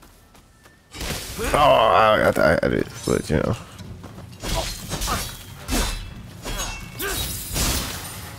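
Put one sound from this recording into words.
A sword swishes and clangs in a fight.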